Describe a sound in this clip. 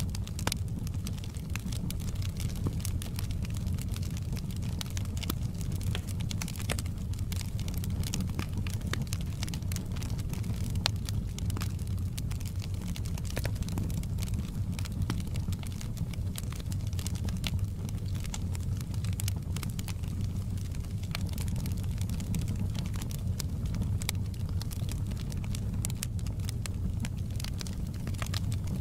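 A wood fire crackles and pops with sharp snaps throughout.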